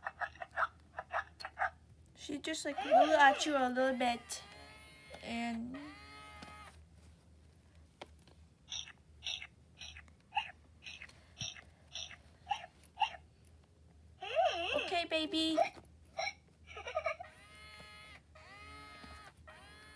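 A young girl talks and sings close by in a high, playful voice.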